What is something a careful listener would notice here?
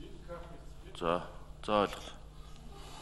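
A man speaks briefly into a microphone, with short drawn-out words.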